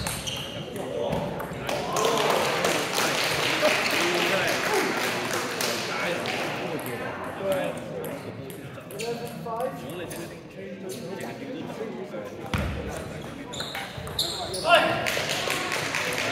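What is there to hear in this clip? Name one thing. A table tennis ball clicks back and forth on bats and the table.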